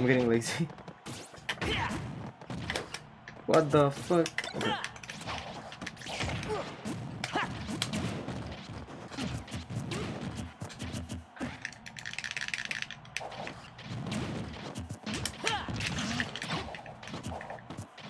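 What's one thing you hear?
Fighting game hits and punches thud and crack in quick bursts.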